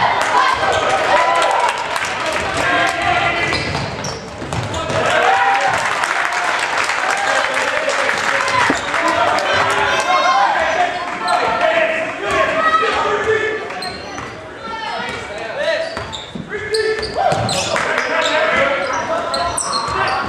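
A crowd of spectators talks and shouts in a large echoing gym.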